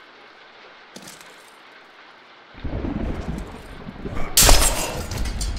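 Steel swords clash and ring.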